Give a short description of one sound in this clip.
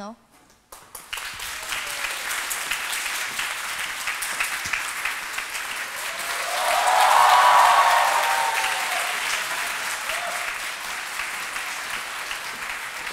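A large audience applauds and cheers in an echoing hall.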